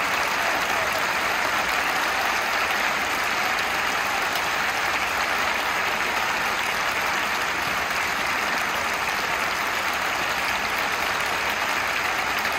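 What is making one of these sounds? A large crowd of fans chants and cheers loudly all around.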